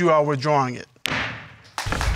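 A gavel bangs once.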